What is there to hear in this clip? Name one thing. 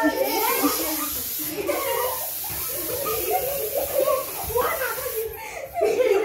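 A spray can hisses in bursts.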